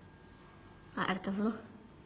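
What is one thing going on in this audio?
A young girl asks a question nearby.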